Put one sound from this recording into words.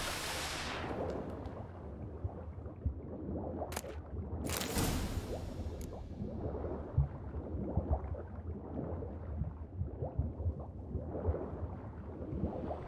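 Water splashes and sloshes as a swimmer surfaces and swims.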